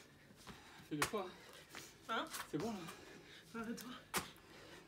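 A young woman grunts and breathes hard with effort.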